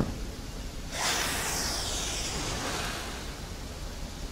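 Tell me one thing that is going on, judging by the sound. A magical chime shimmers and sparkles, then fades.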